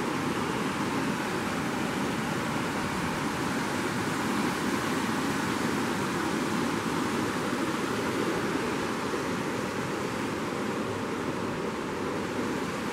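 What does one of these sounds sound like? A river rushes and splashes over rocks nearby.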